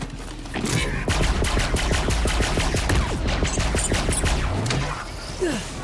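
Rapid gunfire rattles in quick bursts.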